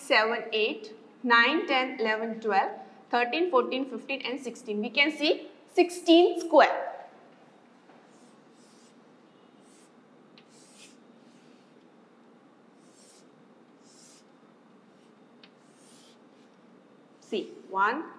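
A woman speaks clearly in a lecturing tone, close by.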